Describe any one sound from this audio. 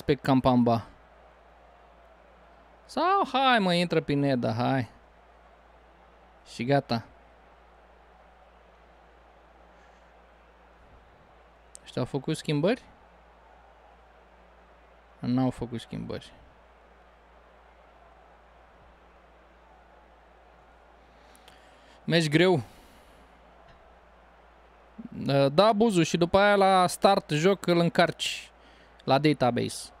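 A man talks casually into a close microphone, in short bursts with pauses.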